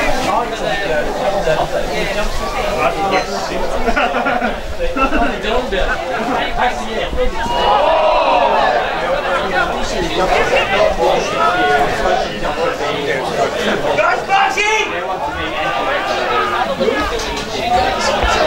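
Young players shout and call to one another across an open field.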